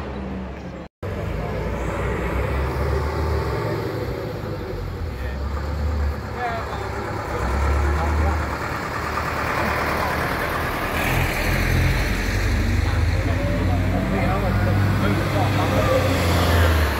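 Diesel engines rumble as several buses approach along the road and pass.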